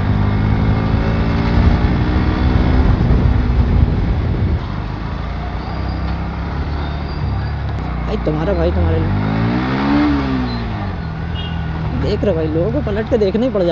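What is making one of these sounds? A motorcycle engine hums steadily and revs up and down while riding.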